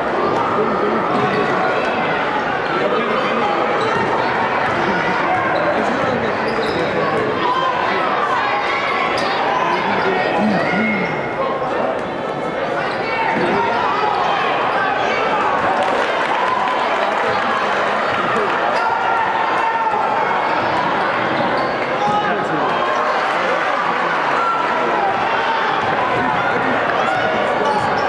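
A large crowd cheers and chatters in an echoing gym.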